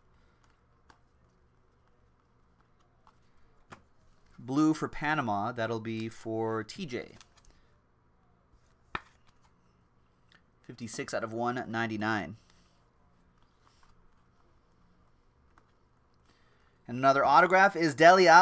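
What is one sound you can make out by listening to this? Trading cards rustle as they are shuffled by hand.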